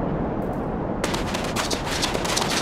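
Maracas shake and rattle in quick bursts.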